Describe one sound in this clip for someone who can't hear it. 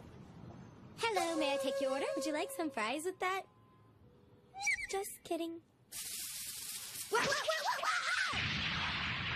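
A young woman exclaims with animation.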